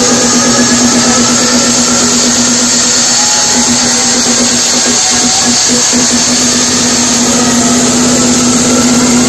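Loud electronic dance music booms through big speakers, heard close and distorted.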